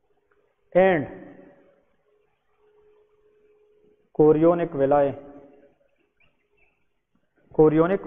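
A man speaks in an explanatory way nearby.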